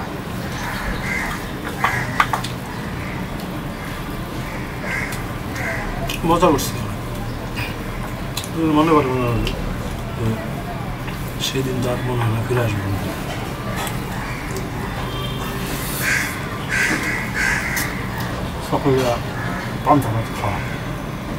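Fingers mix rice against a metal plate with soft clinks.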